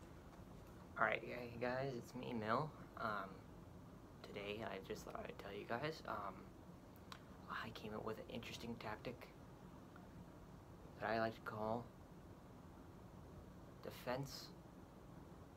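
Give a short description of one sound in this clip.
A young woman speaks calmly and close by, with pauses between phrases.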